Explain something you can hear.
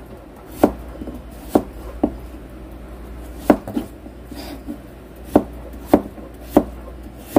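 A knife chops through potatoes onto a cutting board with sharp knocks.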